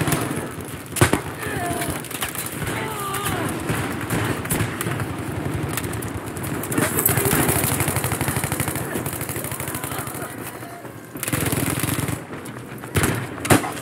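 Gunshots crack sharply at close range.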